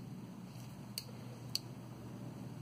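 Pliers click against a wire.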